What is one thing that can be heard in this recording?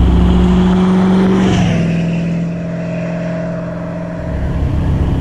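A car roars past close by and fades away.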